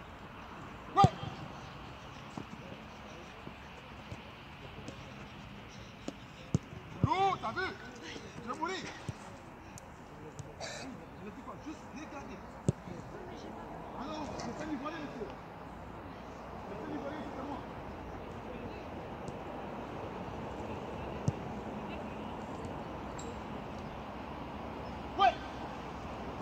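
Young boys call out and shout outdoors.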